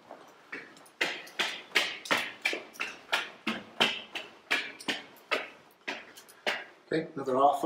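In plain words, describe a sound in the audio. Footsteps climb a flight of stairs at a steady pace.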